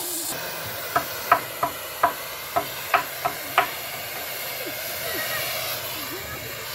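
An excavator engine idles steadily nearby.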